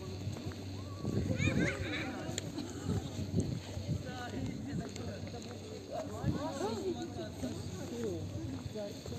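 Voices of passers-by murmur faintly outdoors.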